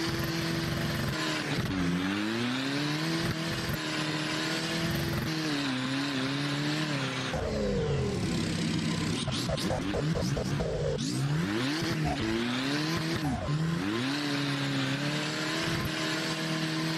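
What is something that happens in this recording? Tyres screech as a car slides through bends.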